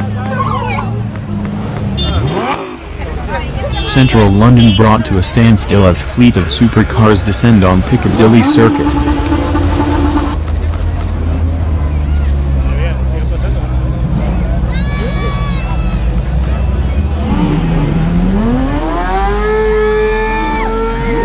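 A sports car engine rumbles and revs loudly close by.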